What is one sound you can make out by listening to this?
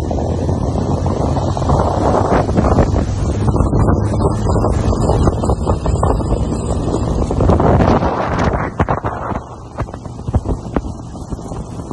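A motorboat cruises at speed across open water.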